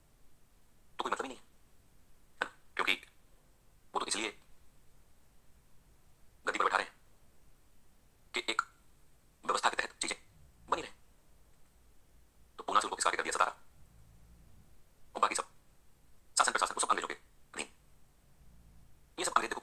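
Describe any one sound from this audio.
A man lectures calmly in short bursts, heard through a small loudspeaker.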